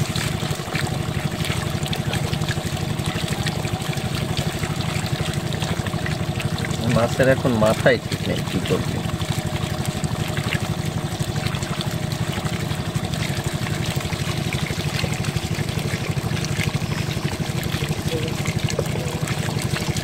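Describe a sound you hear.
Small fish splash and flap in shallow water.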